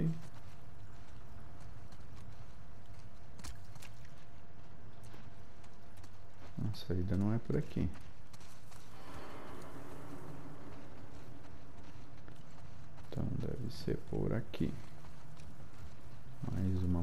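Footsteps tread softly on ground and grass.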